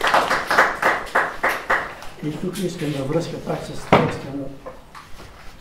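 An elderly man reads aloud in a room with some echo.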